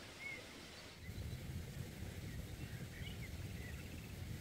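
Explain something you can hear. Leafy plants rustle as they are pulled up from the ground.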